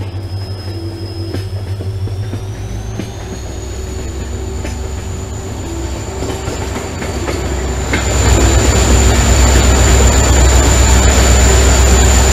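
A train rumbles and clatters along the rails.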